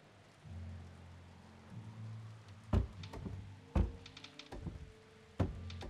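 A cabinet door clicks and swings open.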